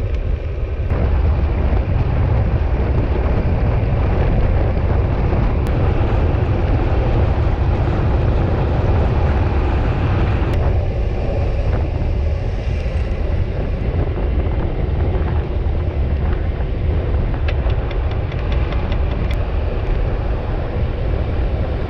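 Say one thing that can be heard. Bicycle tyres hum on asphalt.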